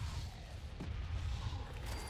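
A video game energy blast bursts with a loud whoosh.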